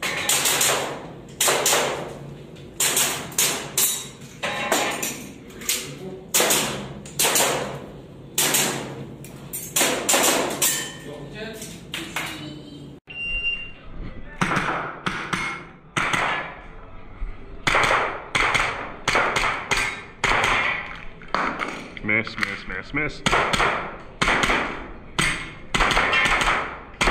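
Pistol shots crack in quick bursts and echo around an indoor room.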